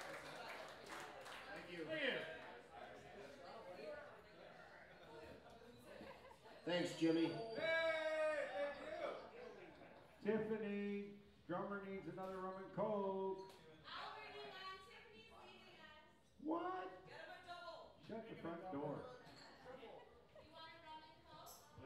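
People chatter loudly nearby.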